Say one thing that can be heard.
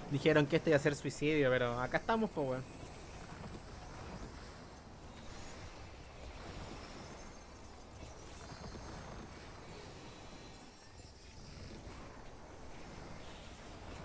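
Magic spells crackle and boom during a battle.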